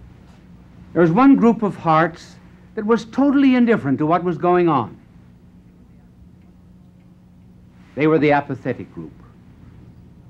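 An elderly man speaks slowly and deliberately, in short phrases with long pauses.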